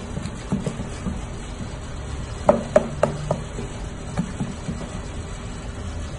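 A cleaver chops rapidly through raw meat on a wooden board.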